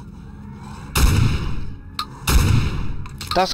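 A gun fires heavy booming shots.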